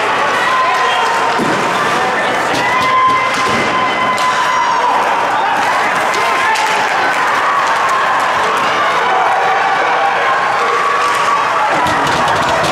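Spectators murmur and call out in a large echoing rink.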